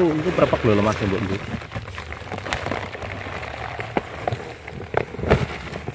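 A cloth sack rustles and scrapes.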